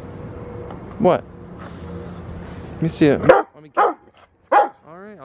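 A dog whines and yelps in short bursts.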